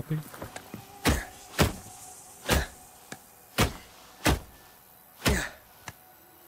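An axe strikes wood again and again in sharp, hard blows.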